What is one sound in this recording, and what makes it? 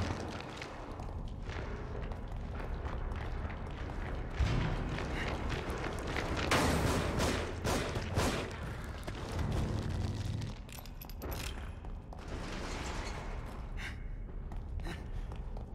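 Footsteps hurry across a hard, gritty floor.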